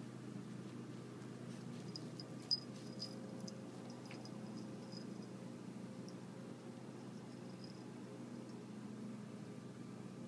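A cat rustles through leafy plants.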